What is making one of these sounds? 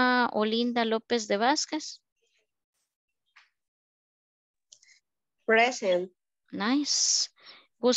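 A woman speaks with animation through an online call.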